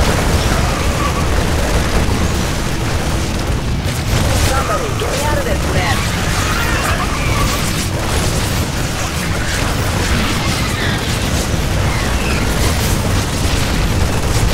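Rapid gunfire and blasts crackle steadily in a fierce battle.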